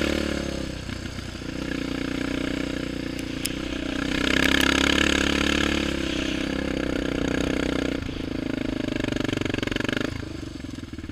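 A single-cylinder sport quad engine runs under throttle.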